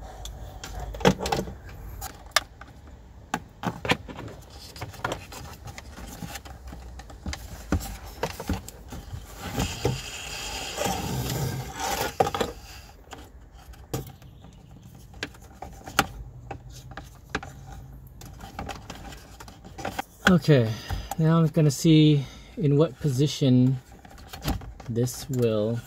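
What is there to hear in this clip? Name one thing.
Plastic parts click and knock as hands fit them together.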